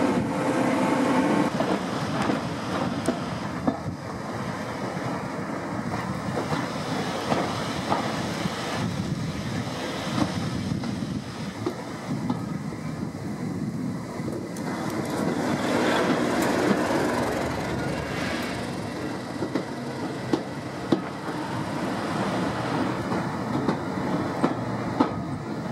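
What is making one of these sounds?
Train wheels rumble and clatter steadily on the rails.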